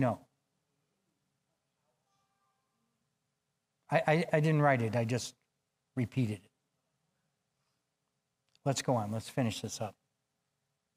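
An elderly man speaks with emphasis through a microphone, pausing between phrases.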